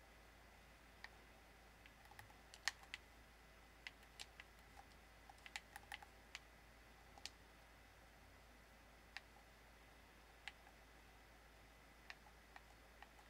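Footsteps tap lightly on a hard floor.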